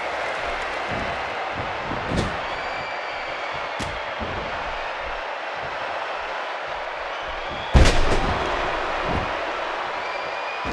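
A large crowd cheers steadily in an arena.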